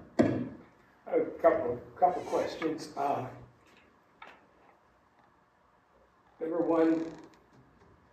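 An older man speaks calmly into a microphone, heard through loudspeakers in a large room.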